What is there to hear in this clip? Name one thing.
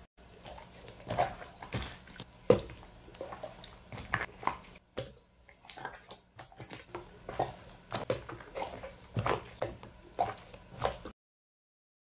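Gloved hands squish and squeeze a wet, sticky slime, with soft squelching and popping.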